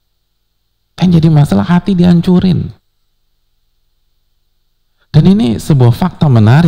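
A man speaks calmly into a headset microphone, with pauses.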